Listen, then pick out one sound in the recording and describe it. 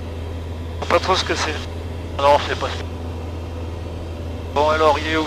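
A man speaks in short bursts through a headset intercom.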